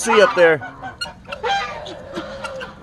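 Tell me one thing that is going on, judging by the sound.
Guinea fowl chatter with sharp, rapid calls.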